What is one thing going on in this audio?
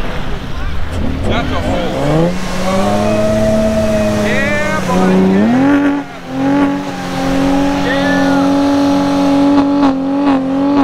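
An engine revs up and roars steadily nearby.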